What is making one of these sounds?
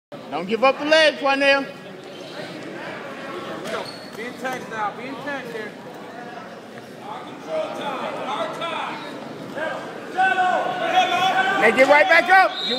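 Wrestlers' shoes squeak and thud on a mat.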